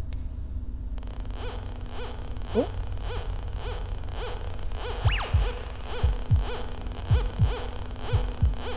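A metal detector beeps in a quick, steady rhythm.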